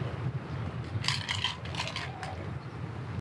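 Small objects clink and rattle as they are handled close by.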